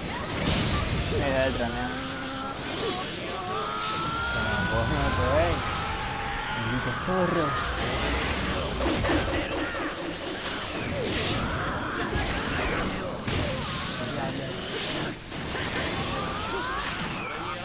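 Energy attacks whoosh and crackle.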